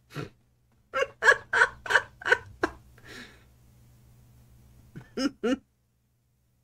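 A middle-aged man laughs heartily close by.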